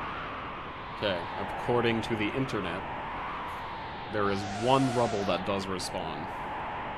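A young man speaks briefly into a microphone, close by.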